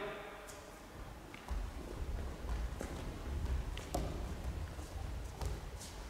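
Bare feet stamp and slide on a wooden floor in a large echoing hall.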